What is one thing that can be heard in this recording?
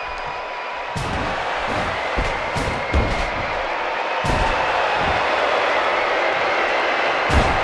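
A metal bin clangs loudly against a body.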